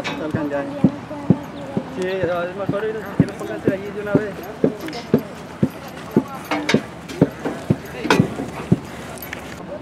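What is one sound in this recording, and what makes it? Horse hooves clop steadily at a walk.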